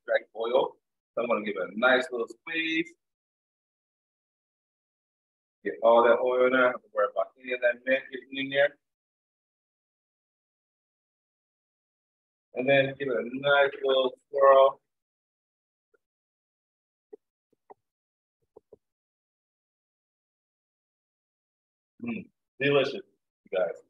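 A man speaks with animation over an online call, in bursts with pauses.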